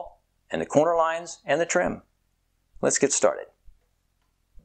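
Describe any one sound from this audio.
A middle-aged man speaks calmly and clearly into a close microphone.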